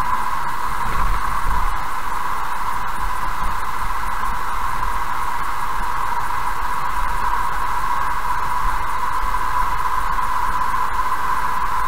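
Tyres roll steadily on an asphalt road.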